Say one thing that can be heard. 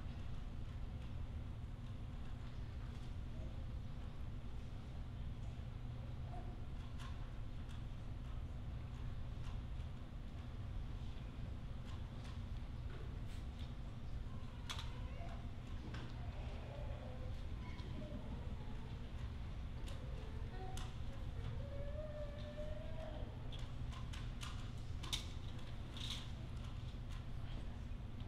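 A puzzle cube clicks and clatters as it is twisted quickly.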